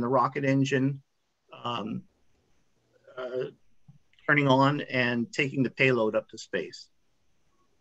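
A man speaks calmly through an online call.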